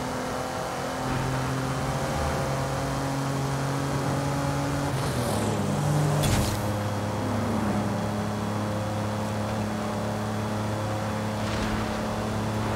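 A sports car engine roars steadily at high speed, shifting gear once.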